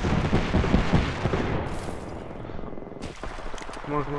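A body slides along gravelly ground with a scraping rush.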